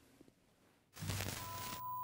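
Static crackles and hisses loudly.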